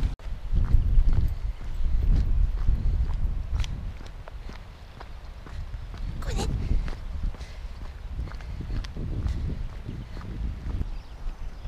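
A small dog's paws patter on a gravel path.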